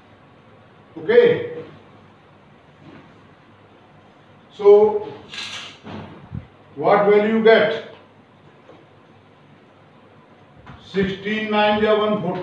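An elderly man speaks in bursts, explaining calmly and close by.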